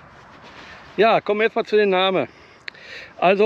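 An older man speaks close to a microphone.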